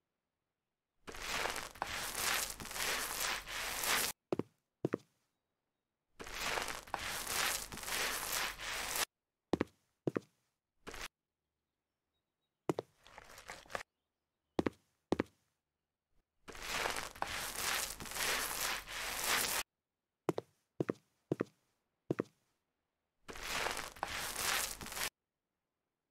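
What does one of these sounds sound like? A paint roller rolls wetly across a surface in repeated bursts.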